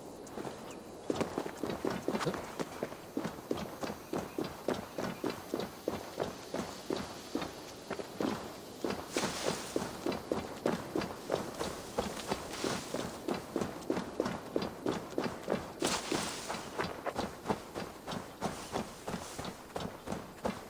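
Footsteps tread steadily over rough ground and grass.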